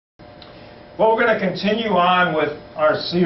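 A man speaks calmly to an audience through a microphone.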